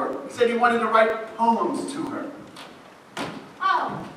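A young man speaks loudly across an echoing hall.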